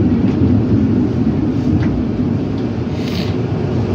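Tram doors fold open with a clatter.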